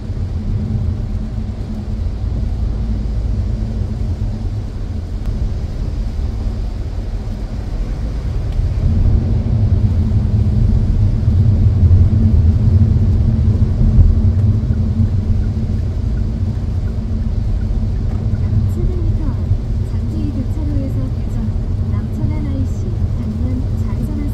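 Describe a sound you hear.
A car engine and tyres rumble steadily on a wet road.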